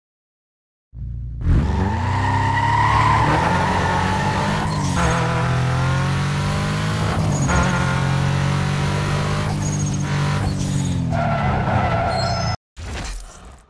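A car engine revs and roars as the car speeds up and shifts gears.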